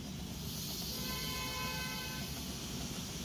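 A small steam train whistles in short bursts.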